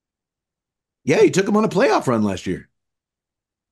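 A second man speaks cheerfully over an online call.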